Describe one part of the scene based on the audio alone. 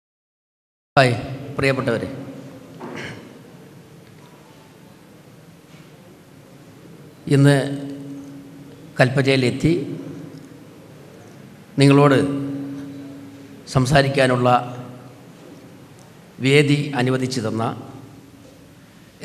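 A man speaks with emphasis into a microphone over loudspeakers, his voice echoing in a large hall.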